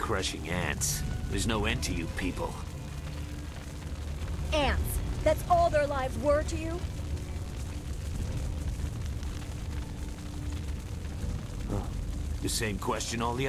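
A low rumble of fire roars steadily.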